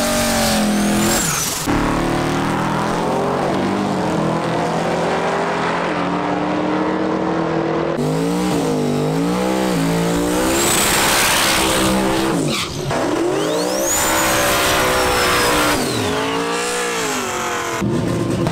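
Tyres screech and squeal as they spin.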